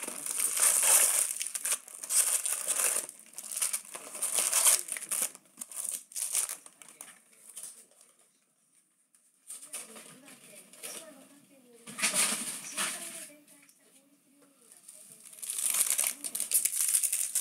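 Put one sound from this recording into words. Foil packs crinkle and rustle as they are handled.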